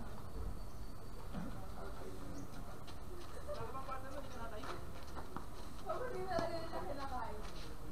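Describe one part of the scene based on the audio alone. A tennis ball is struck by rackets with sharp pops.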